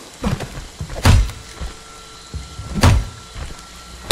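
A body thumps heavily against a wooden window frame.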